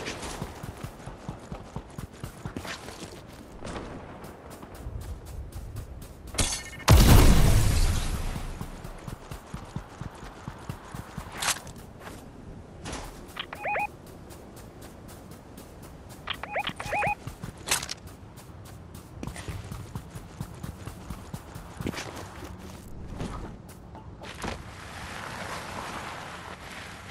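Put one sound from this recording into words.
Quick footsteps patter over sand and ground.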